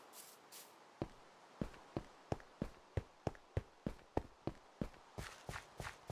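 Footsteps tap quickly and evenly on hard ground.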